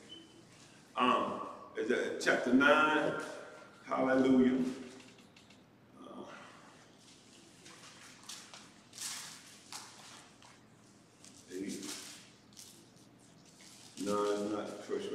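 An older man speaks slowly and earnestly into a microphone, with pauses, in a reverberant room.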